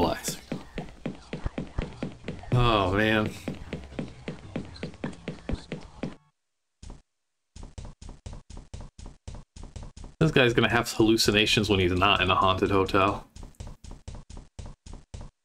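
Footsteps tap on a floor.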